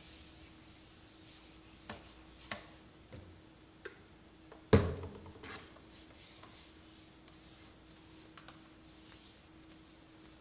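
A hand rubs a cloth over a wooden tabletop.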